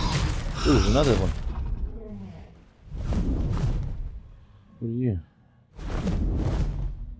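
Large wings beat with heavy whooshing gusts.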